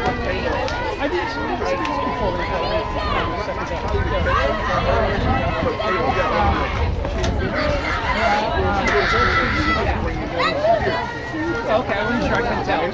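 A crowd of spectators and players chatters and calls out outdoors.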